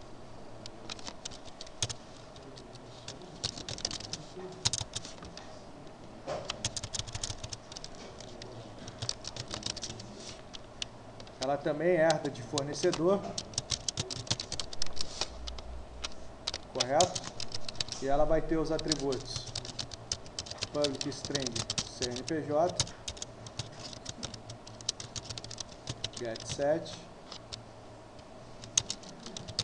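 A keyboard clatters with quick, uneven taps.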